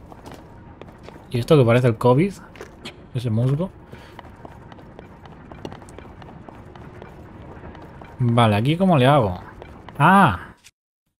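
Light footsteps patter quickly on stone.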